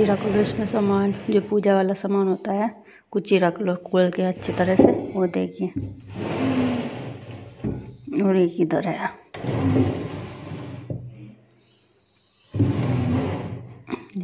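A wooden drawer slides open and shut.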